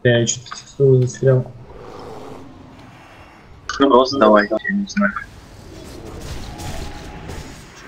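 Magic spells crackle and whoosh during a battle.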